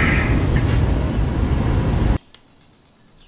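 A truck engine rumbles loudly and then cuts off abruptly.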